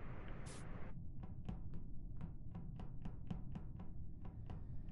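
Soft footsteps patter quickly.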